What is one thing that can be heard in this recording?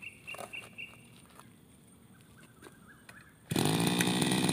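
A starter cord is pulled sharply on a small engine.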